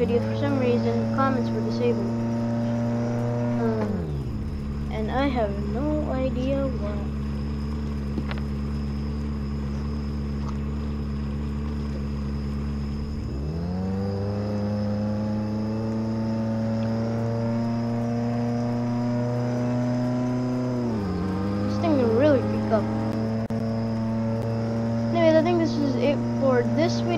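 A motorboat engine drones steadily, dropping low and then rising again in pitch.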